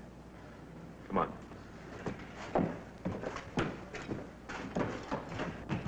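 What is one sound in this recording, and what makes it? Footsteps knock on a hard floor as a man walks away.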